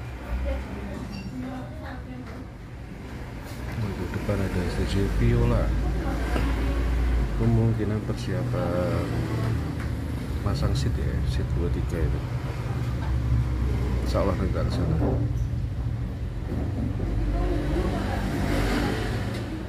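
A bus engine rumbles nearby on the street.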